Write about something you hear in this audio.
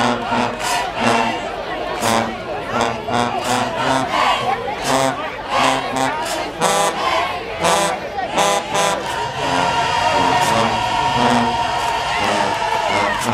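A marching band with sousaphones plays brass music outdoors in the stands.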